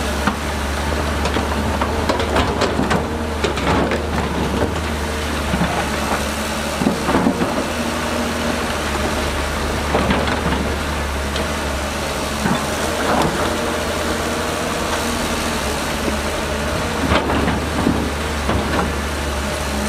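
A bulldozer engine drones.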